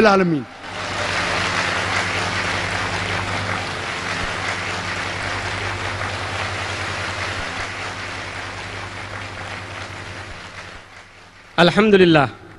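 A large crowd applauds, and the applause slowly fades.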